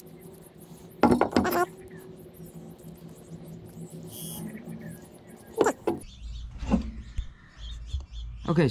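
A metal part knocks and scrapes against a wooden board.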